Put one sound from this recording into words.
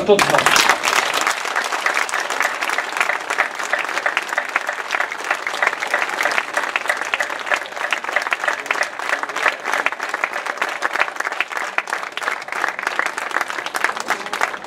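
A crowd claps and applauds steadily outdoors.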